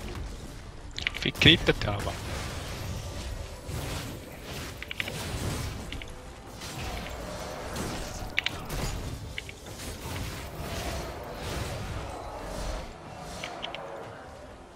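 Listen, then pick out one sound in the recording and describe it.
Game characters' attacks clang and hit repeatedly.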